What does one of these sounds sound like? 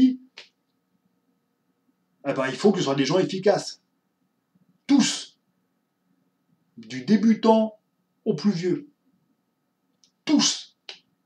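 A man speaks close to a microphone with animation, in short bursts.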